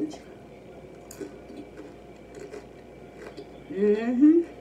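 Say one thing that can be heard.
A young woman chews crunchy tortilla chips.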